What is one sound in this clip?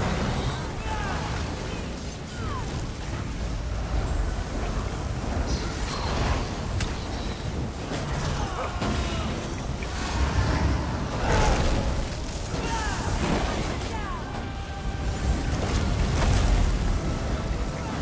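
Magic spells crackle and zap with electric bursts.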